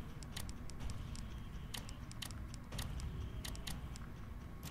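Soft menu clicks tick at an uneven pace.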